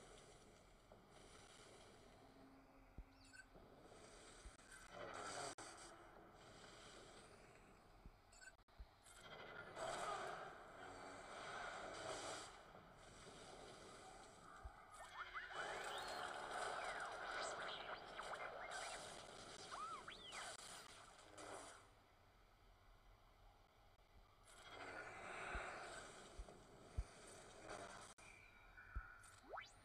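Lightsabers hum and clash.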